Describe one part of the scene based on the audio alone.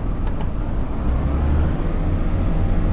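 A train's motor grows louder and whines as the train starts to move.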